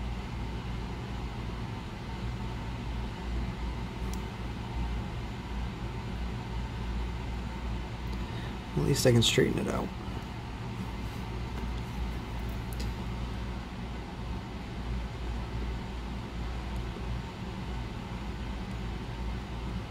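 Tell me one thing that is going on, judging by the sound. A soldering iron sizzles faintly against metal.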